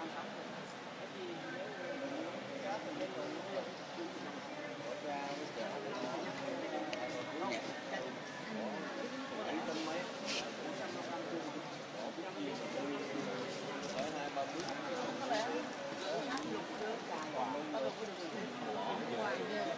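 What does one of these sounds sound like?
A crowd of people chatter throughout a large echoing hall.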